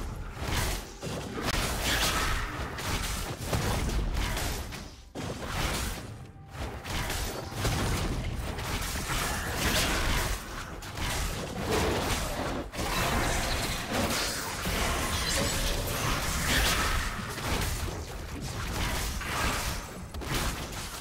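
Magic spells whoosh and crackle as fantasy fighters clash.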